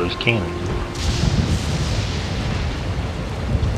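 Thunder cracks and rumbles.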